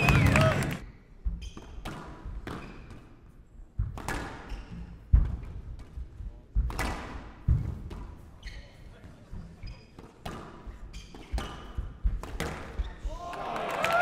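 A squash ball smacks sharply against the walls in a quick rally.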